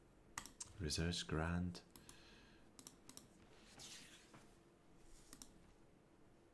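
Short menu clicks sound as game panels open.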